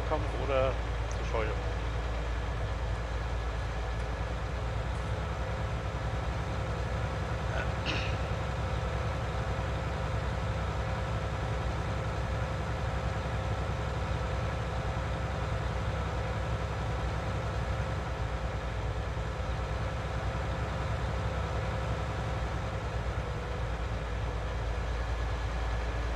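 A tractor engine drones steadily at low pitch.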